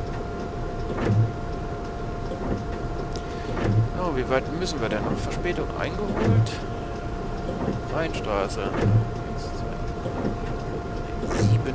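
Windscreen wipers sweep back and forth with a regular dull thump.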